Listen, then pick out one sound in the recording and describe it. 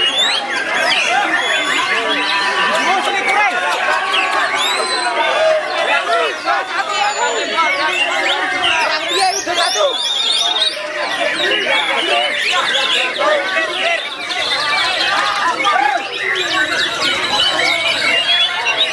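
Many other birds chirp and whistle all around.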